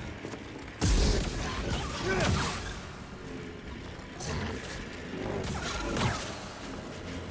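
Lightsaber blades clash with sharp crackling hits.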